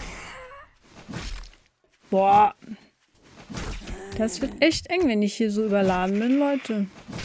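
A club thuds heavily against a body.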